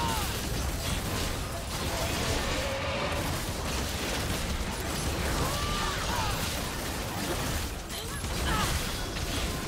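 Fantasy game battle effects crackle, whoosh and clash without pause.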